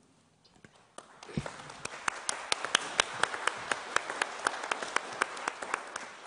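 A small audience applauds in an echoing room.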